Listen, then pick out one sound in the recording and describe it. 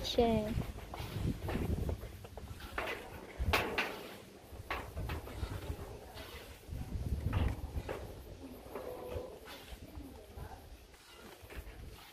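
Plastic pipe fittings knock and clatter against each other.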